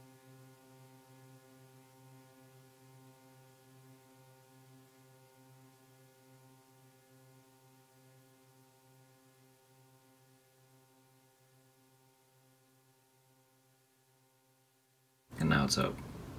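An electronic keyboard holds a low, humming note that slowly fades away.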